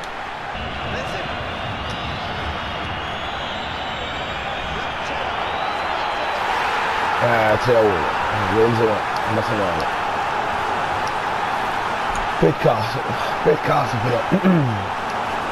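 A large stadium crowd roars steadily, swelling louder.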